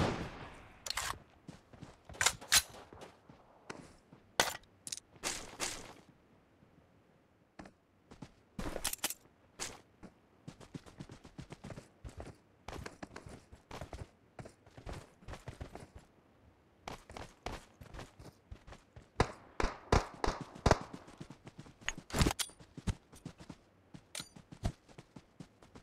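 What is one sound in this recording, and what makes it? Footsteps patter quickly over grass and rock.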